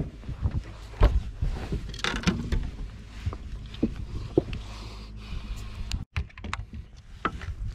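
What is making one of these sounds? Knocks and thumps sound on a boat deck.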